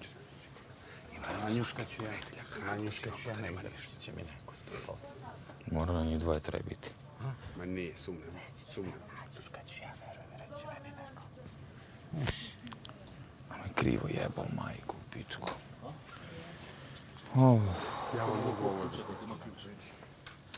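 Several men talk with animation nearby in a room.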